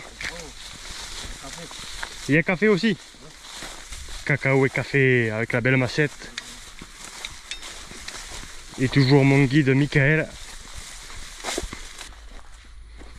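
Tall grass rustles and swishes as people push through it.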